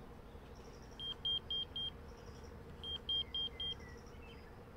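A pager beeps in quick bursts of high tones.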